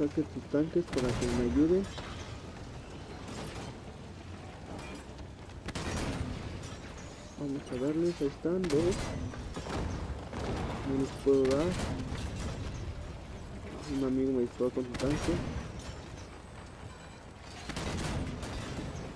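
Explosions boom loudly now and then.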